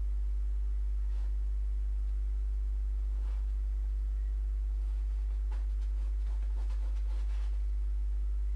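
A brush dabs oil paint onto a canvas.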